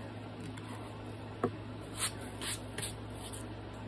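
A sanding block taps down on a hard surface.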